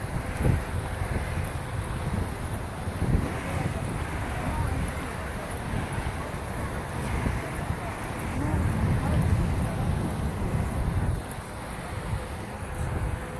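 Wind rumbles against the microphone outdoors.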